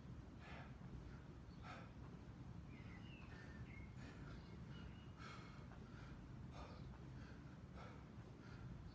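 A man breathes while exercising.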